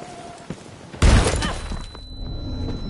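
A pistol fires a burst of gunshots.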